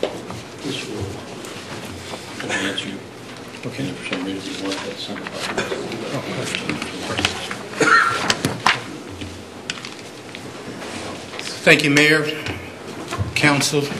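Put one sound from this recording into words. A man speaks through a microphone at a lectern.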